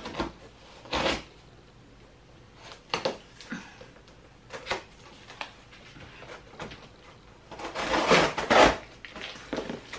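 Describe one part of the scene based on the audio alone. A cardboard box flap rustles and scrapes.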